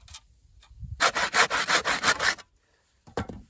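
A hand saw cuts through wood in quick strokes.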